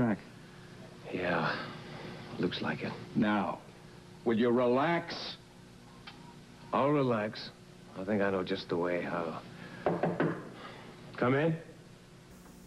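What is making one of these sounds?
A younger man speaks calmly, close by.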